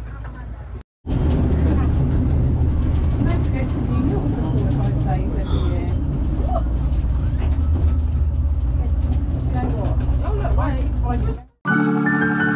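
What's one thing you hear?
A vehicle rumbles steadily as it drives along.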